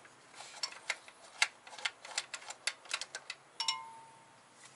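Metal tools click and tap against engine parts.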